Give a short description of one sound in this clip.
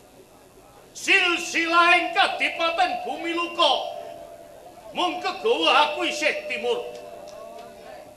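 A man declaims loudly and dramatically over a loudspeaker, his voice rising and falling.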